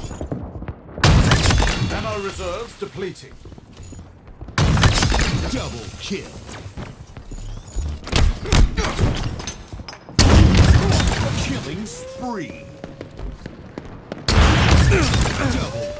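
A sniper rifle fires loud, booming shots that echo away.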